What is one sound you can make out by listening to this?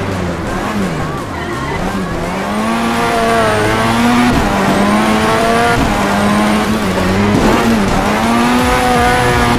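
Tyres screech while a car drifts.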